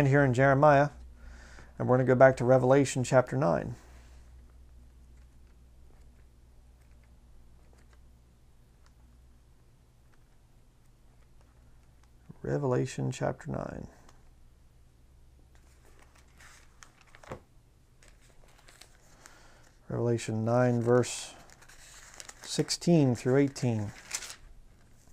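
A man reads aloud calmly into a close microphone, with pauses.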